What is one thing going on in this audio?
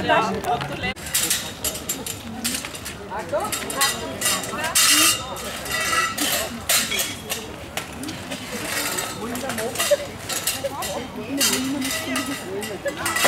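Metal tent poles clatter and rattle.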